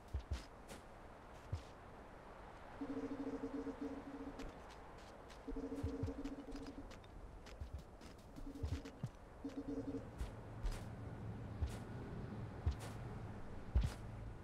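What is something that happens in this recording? Sharp thuds and clanks go off again and again in quick bursts.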